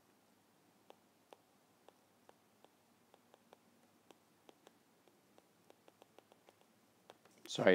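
A stylus taps lightly on a tablet while writing.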